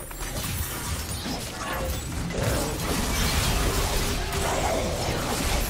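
Fantasy battle game spell and combat effects crackle and clash.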